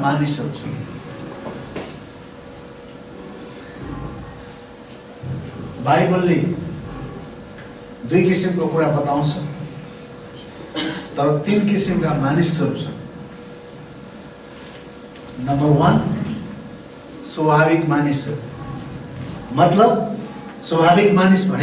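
A middle-aged man speaks with animation through a microphone, in bursts with pauses, in a slightly echoing room.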